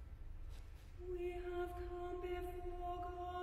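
A woman sings a long, steady note in a large echoing hall.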